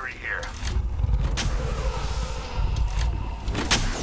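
A video game shield cell charges with an electronic whir.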